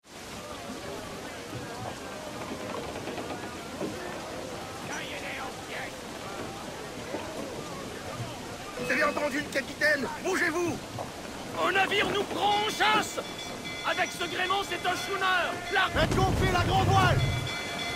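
Waves wash and splash against a wooden ship's hull.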